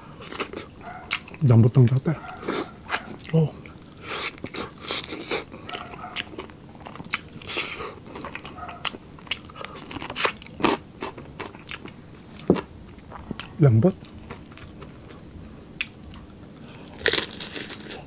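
A man chews noisily with wet smacking sounds close to a microphone.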